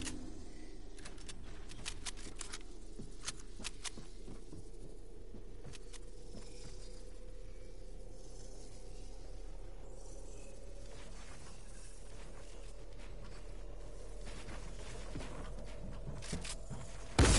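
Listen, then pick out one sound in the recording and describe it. Quick sharp clicks and snaps rattle in bursts.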